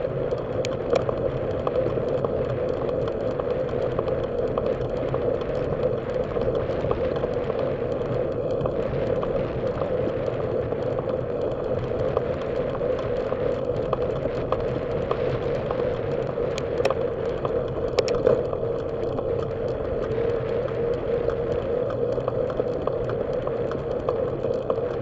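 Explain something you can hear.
Tyres roll steadily over a road.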